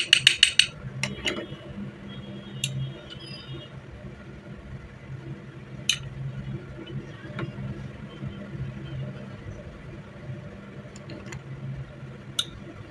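Small metal gun parts click and clack in someone's hands.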